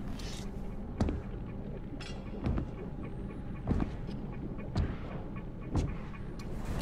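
Heavy footsteps thud at a slow, even pace.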